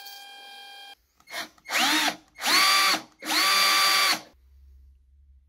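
An electric drill whirs in short bursts.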